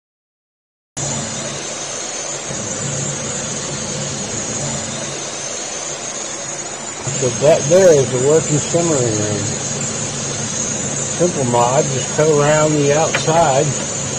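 A gas stove burner hisses steadily.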